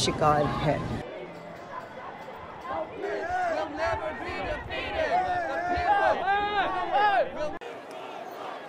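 A crowd of protesters chants loudly outdoors.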